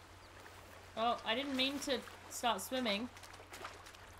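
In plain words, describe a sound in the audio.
A young woman speaks loudly and with animation, close to a microphone.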